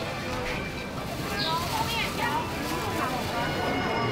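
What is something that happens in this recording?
A crowd of people chatters in a busy street.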